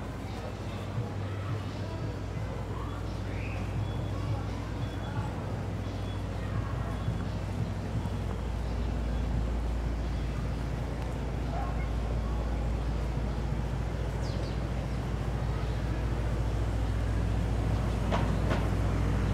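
City traffic rumbles steadily in the distance outdoors.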